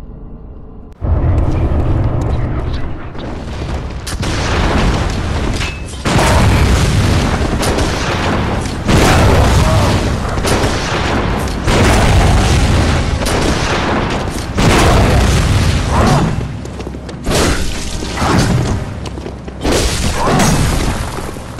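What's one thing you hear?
Swords clash and slash in a fight.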